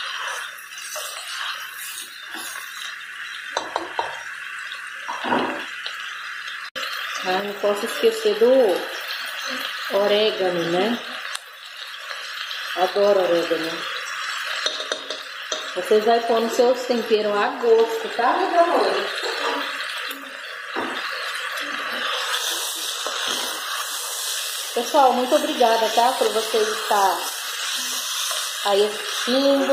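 A plastic spatula scrapes and knocks against a metal pot while stirring food.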